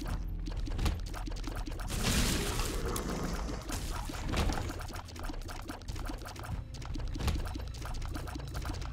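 Video game shots pop and splatter rapidly.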